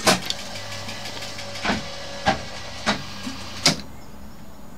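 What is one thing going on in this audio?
Slot machine reels whir as they spin.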